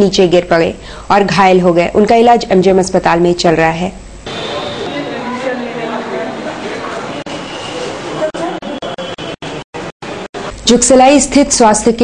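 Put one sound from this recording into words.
A young woman speaks clearly and steadily into a microphone.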